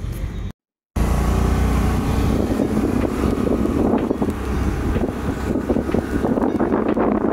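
A scooter engine runs steadily as the scooter rides along.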